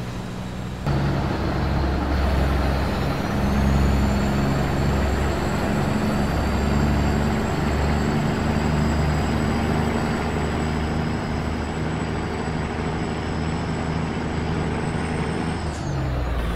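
A diesel semi-truck engine drones as the truck cruises on a highway.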